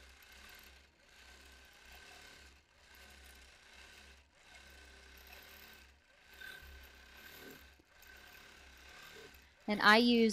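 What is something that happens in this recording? A sewing machine hums and stitches in short runs with brief pauses.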